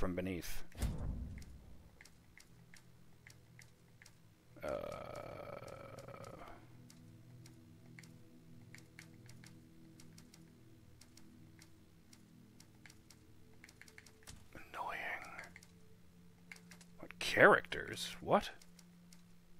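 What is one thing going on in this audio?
Soft menu clicks tick again and again.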